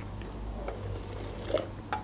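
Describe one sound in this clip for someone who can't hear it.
A young woman gulps down a drink.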